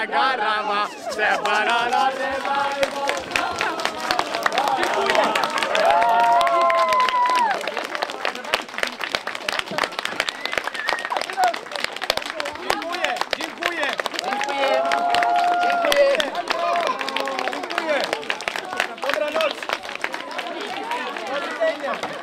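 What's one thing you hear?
A crowd applauds outdoors with steady, rapid clapping.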